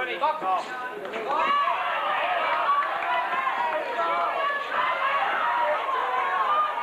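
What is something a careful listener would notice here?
A crowd shouts and cheers in a large hall.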